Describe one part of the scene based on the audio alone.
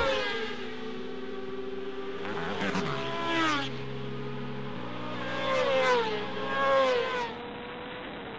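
Motorcycles race past with a rising and falling whine.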